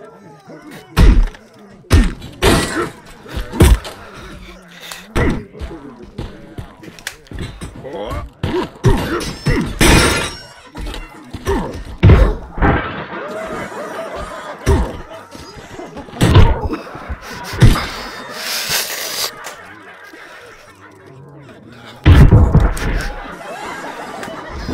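Heavy blows thud and smack again and again.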